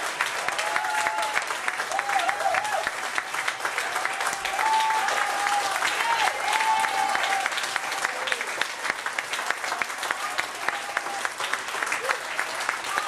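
Loud applause with many hands clapping fills an echoing room.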